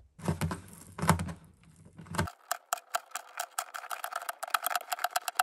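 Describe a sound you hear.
Fingernails scrape and pick at dried glue.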